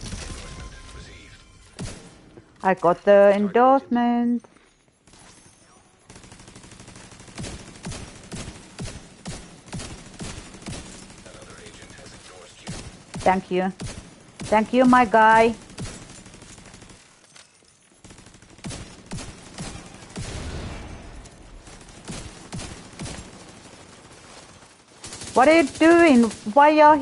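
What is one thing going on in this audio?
Rapid gunfire cracks in bursts, echoing in a tunnel.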